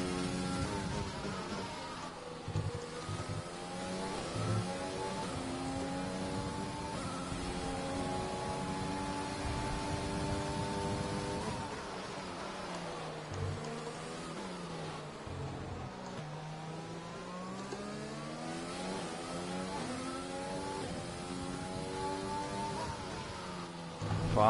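A racing car engine screams, rising in pitch through the gears and dropping as it brakes for corners.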